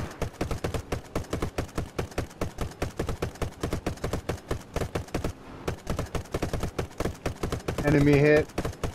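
Machine guns fire in rapid, steady bursts.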